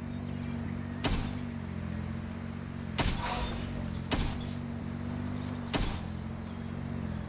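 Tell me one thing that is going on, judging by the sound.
Short game chimes and clicks sound as upgrades are confirmed.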